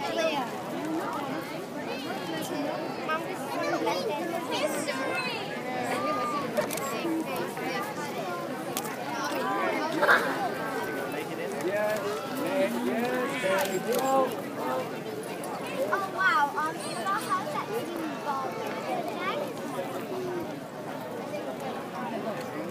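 A large outdoor crowd cheers and chatters excitedly.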